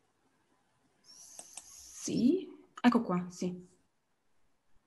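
A second young woman speaks over an online call.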